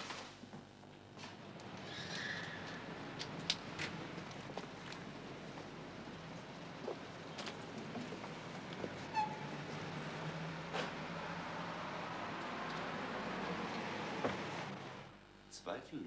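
Street noise hums steadily outdoors.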